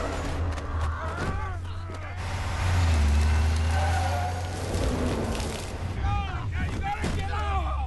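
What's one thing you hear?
A man grunts and strains in a struggle.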